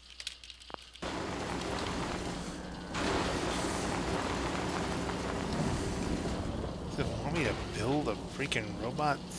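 A robot rolls along on clanking treads with a mechanical whir.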